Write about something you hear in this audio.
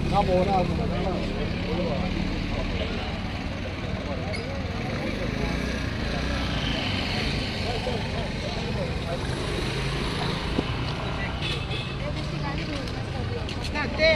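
Men talk with animation close by, outdoors.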